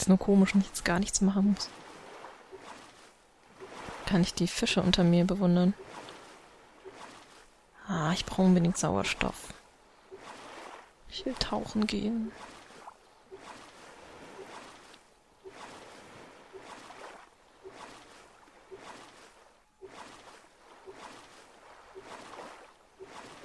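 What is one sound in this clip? A paddle splashes and swishes through water in steady strokes.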